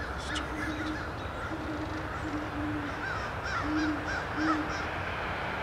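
Owls hoot deeply, several times in a row.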